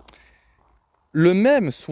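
A crossbow fires a bolt with a sharp twang.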